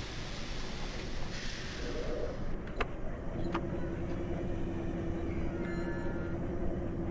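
A diesel locomotive engine rumbles steadily.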